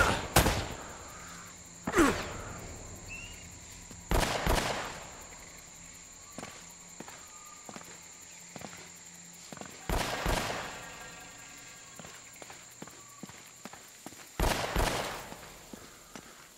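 Pistol shots crack loudly, one at a time, echoing in an enclosed space.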